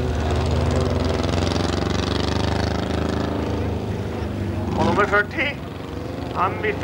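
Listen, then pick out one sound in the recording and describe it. Race car engines roar loudly at high revs close by.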